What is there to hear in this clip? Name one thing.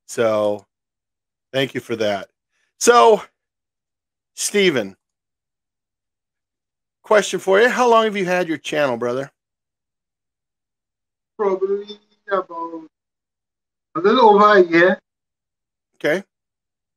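A middle-aged man talks with animation into a close microphone, in short bursts with pauses.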